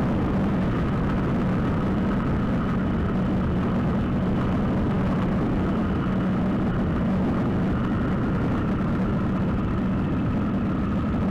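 Wind buffets loudly and steadily.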